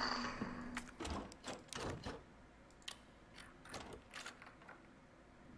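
A key turns in a door lock with metallic clicks.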